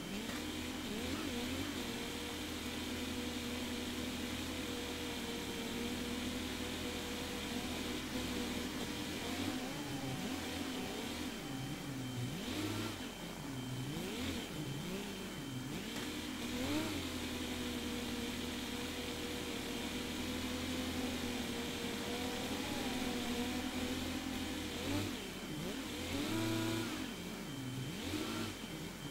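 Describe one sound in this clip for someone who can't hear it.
A diesel tractor engine drones steadily under load.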